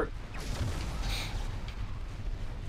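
An energy blast crackles and whooshes.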